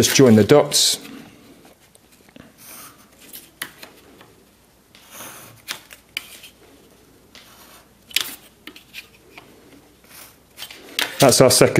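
A plastic ruler taps and slides on paper.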